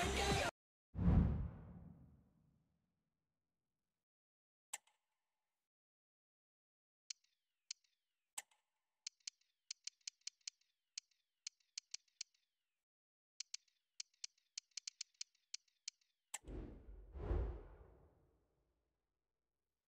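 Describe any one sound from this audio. A soft whoosh sweeps in and fades as the menu changes.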